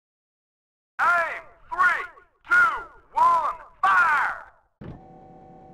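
A countdown beeps four times in quick succession.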